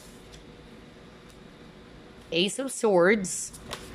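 A card slaps down softly onto a wooden table.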